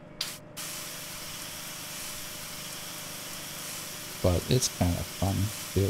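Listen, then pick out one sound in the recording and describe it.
A pressure washer sprays water in a steady hiss.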